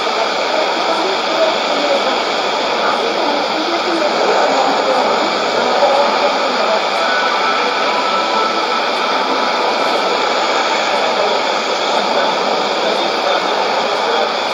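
A shortwave radio plays a distant AM broadcast through hissing static.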